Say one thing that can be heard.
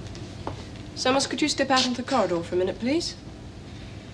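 A young woman speaks softly nearby.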